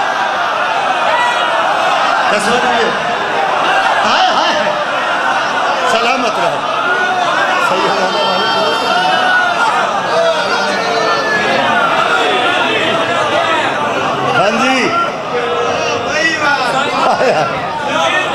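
A crowd of men cheers and calls out.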